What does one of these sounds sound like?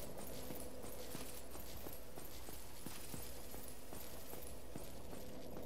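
An armoured figure runs with footsteps clanking on stone.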